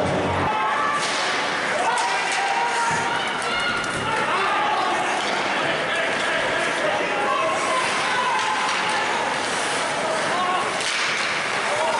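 Hockey sticks clack against the puck now and then.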